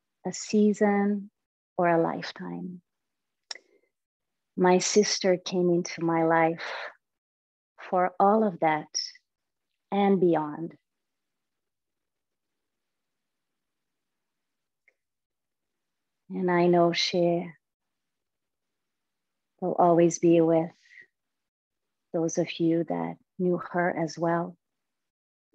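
A young woman speaks calmly and softly into a close microphone, with long pauses.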